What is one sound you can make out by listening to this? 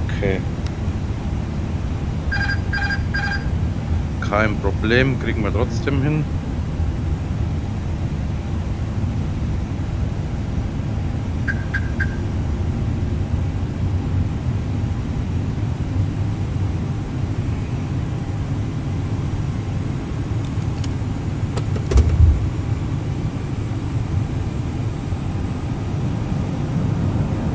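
A jet airliner's engines drone steadily in flight.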